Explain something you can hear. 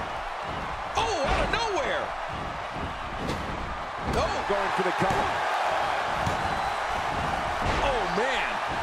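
A body slams onto a wrestling ring mat.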